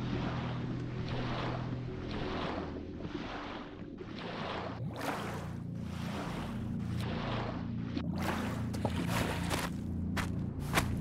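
Footsteps crunch steadily over snowy ground.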